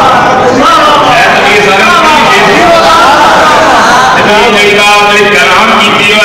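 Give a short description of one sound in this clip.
A man chants in a loud, melodic voice through a microphone and loudspeaker.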